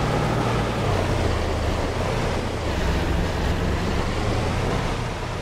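A pickup truck engine hums steadily.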